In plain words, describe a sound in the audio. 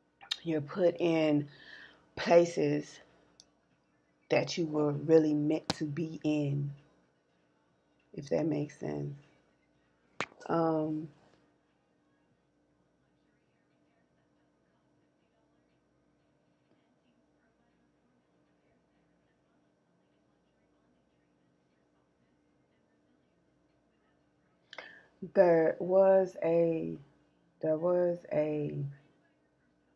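A woman speaks calmly and close to a microphone, pausing between phrases.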